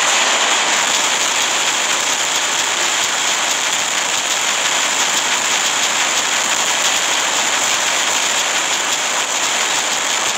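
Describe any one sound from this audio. Rapid machine-gun fire rattles continuously.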